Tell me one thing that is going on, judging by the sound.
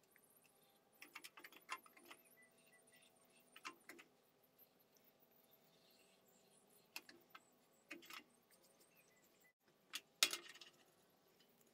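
A steel blade clicks and knocks against a metal jig.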